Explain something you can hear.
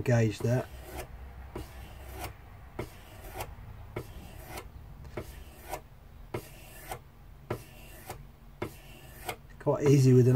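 A knife blade scrapes rhythmically along a sharpening rod.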